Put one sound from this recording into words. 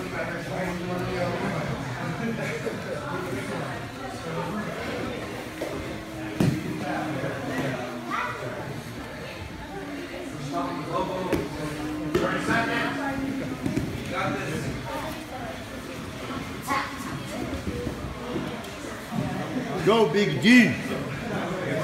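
Several children and men chatter in the background of an echoing room.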